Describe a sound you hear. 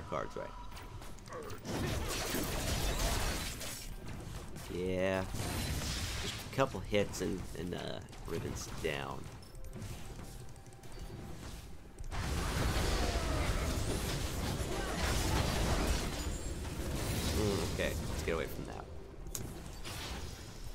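Weapons clang and thud in a busy battle.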